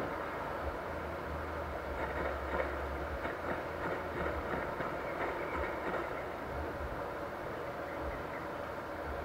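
Game music and effects play from a phone speaker.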